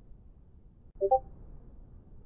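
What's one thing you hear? A short electronic chime plays from a game.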